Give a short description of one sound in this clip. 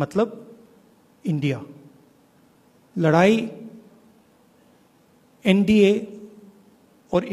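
A middle-aged man speaks deliberately into a microphone, with long pauses, in a room with a light echo.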